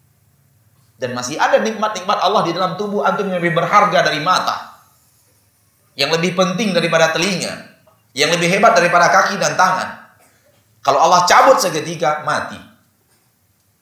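A man speaks with animation through a microphone in an echoing hall, with pauses between phrases.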